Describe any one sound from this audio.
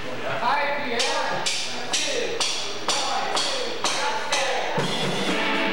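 Cymbals crash in a steady beat.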